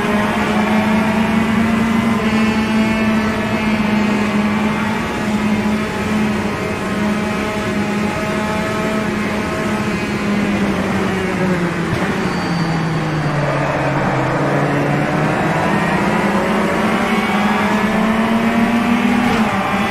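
A touring car engine screams at high revs, drops in pitch when slowing, then climbs again.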